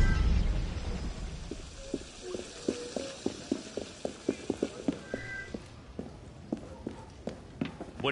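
Footsteps run quickly on stone.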